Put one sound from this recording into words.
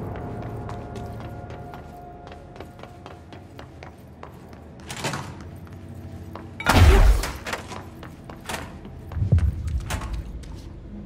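Footsteps tap quickly on hard floors and metal stairs.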